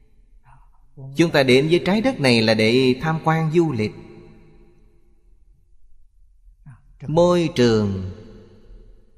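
An elderly man speaks calmly and warmly into a close microphone.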